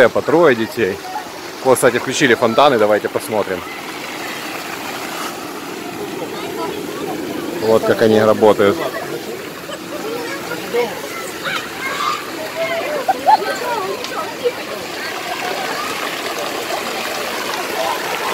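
A fountain splashes steadily into a pool.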